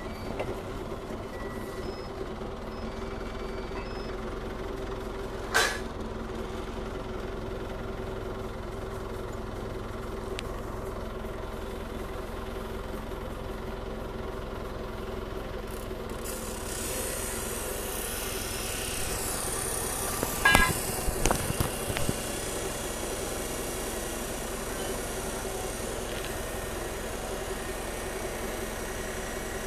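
A forklift engine runs with a steady low hum.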